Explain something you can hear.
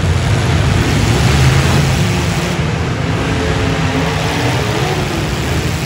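Metal crunches as cars crash into each other.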